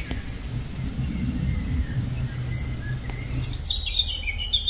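A fly buzzes close by.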